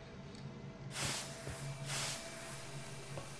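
A smoke grenade bursts with a hiss.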